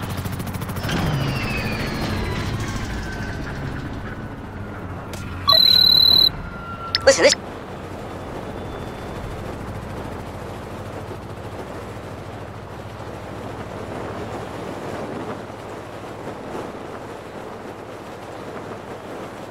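Wind rushes past during a fall through the air.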